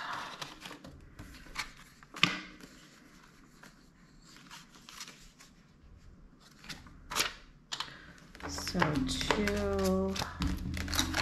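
Paper banknotes rustle and crinkle as they are handled.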